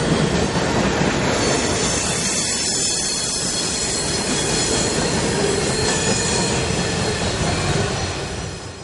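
A freight train rumbles past close by, its wheels clattering and squealing on the rails.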